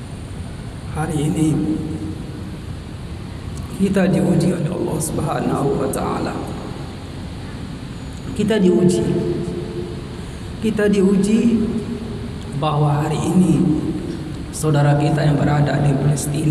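A middle-aged man speaks into a microphone over a loudspeaker in a large echoing hall, in long drawn-out phrases.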